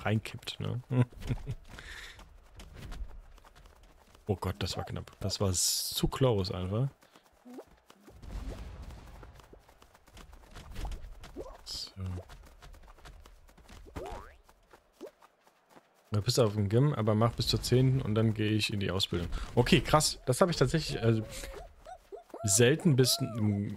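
A man talks calmly and with animation close to a microphone.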